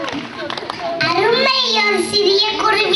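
A young girl sings loudly.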